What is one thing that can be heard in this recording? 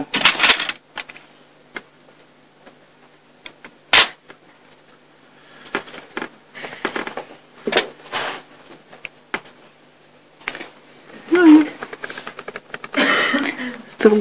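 Small objects click and tap as a young woman handles them close by.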